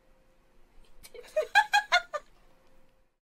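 Young women laugh in short bursts, close by.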